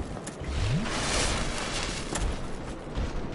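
A magical whoosh swells and fades.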